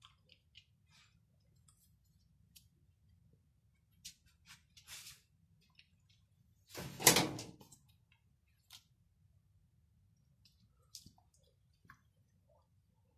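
Dog claws click on a tiled floor.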